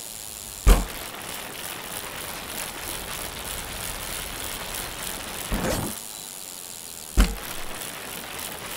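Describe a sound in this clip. Bike tyres roll and rattle over dirt and wooden planks.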